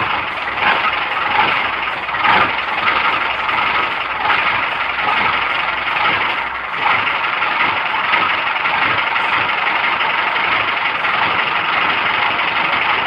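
A vehicle's body rattles and shakes over a rough road.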